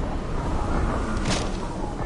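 Wind rushes past as a glider descends.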